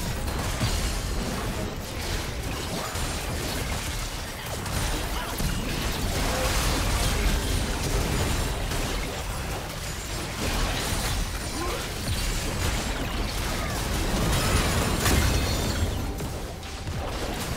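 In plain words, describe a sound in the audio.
Game characters' attacks clash with sharp hits.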